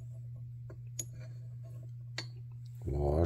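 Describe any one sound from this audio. Small metal parts click and clink softly in someone's hands.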